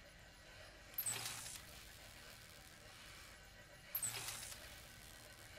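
Metal dials click and whir as they are turned.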